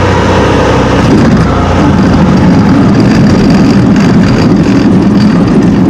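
Wheels of a light plane rumble and thump over a rough unpaved strip.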